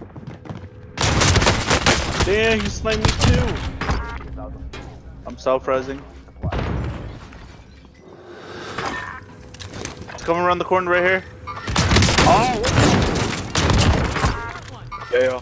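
Gunfire and explosions crack loudly in a video game.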